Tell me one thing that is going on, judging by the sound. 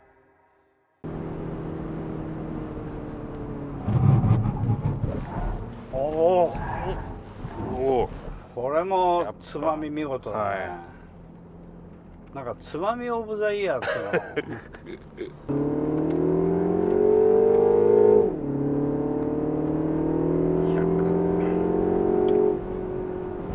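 A car engine hums steadily and rises in pitch as the car speeds up.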